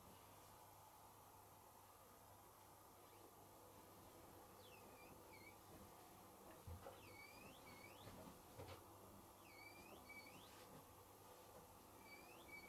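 Laundry thumps softly inside a turning washing machine drum.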